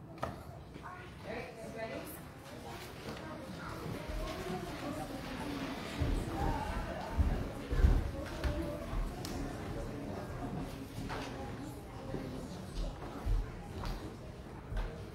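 A crowd of adults and children chatters and murmurs in a large echoing hall.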